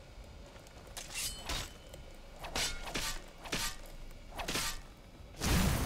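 Metal blades clash and clang in quick blows.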